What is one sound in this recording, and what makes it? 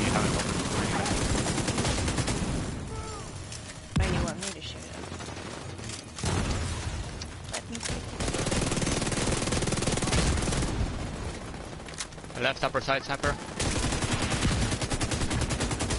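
Rifle gunfire rattles.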